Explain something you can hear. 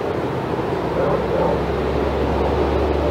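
A dog yawns with a soft whine.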